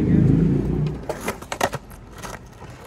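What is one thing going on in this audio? A skateboard clacks and scrapes against a concrete ledge.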